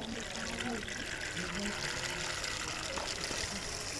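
Water trickles from a plastic bag into a plastic jug.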